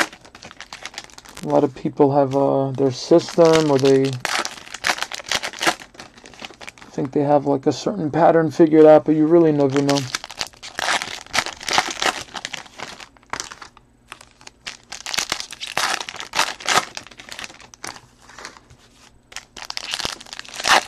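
Foil wrappers crinkle and tear close by.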